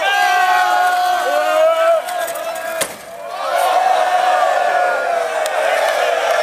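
A crowd of people sings and shouts loudly outdoors.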